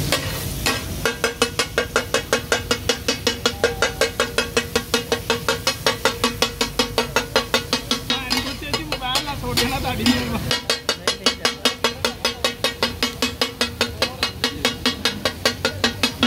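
A metal spatula chops rapidly and rhythmically against a griddle.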